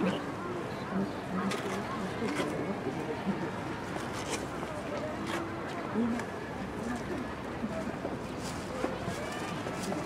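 A small crowd of men and women chatters nearby outdoors.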